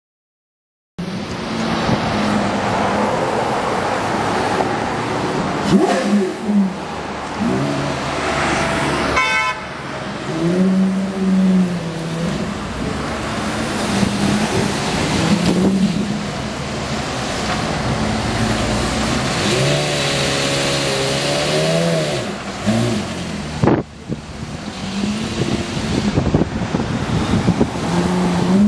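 A Porsche Carrera GT's V10 engine idles.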